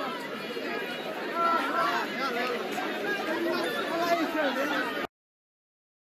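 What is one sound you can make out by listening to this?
A crowd of people chatter and shout outdoors.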